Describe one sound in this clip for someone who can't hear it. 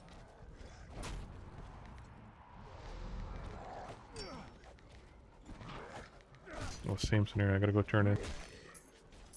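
Sharp weapon blows and magic bursts ring out in a fight.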